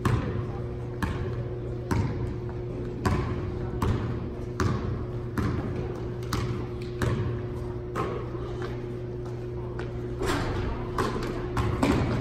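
A basketball bounces rhythmically on a hard floor in an echoing gym.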